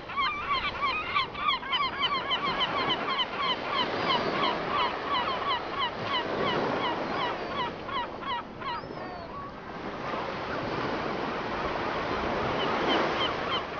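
Small waves lap gently against a floating raft.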